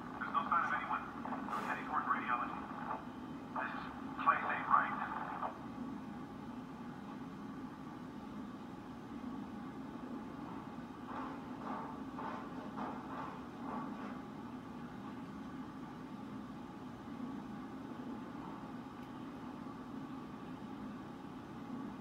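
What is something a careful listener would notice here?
A low steady hum of game sounds plays from a loudspeaker.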